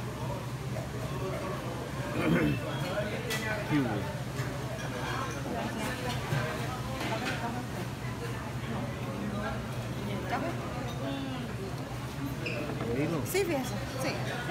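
Several adults chat nearby in a busy room.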